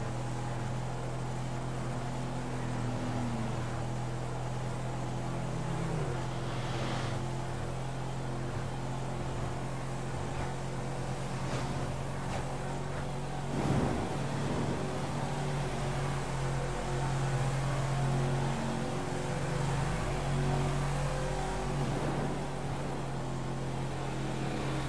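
Tyres roll on wet road.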